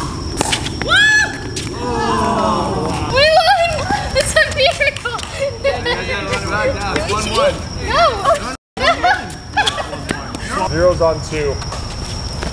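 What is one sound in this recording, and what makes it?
Young women cheer and laugh loudly close by.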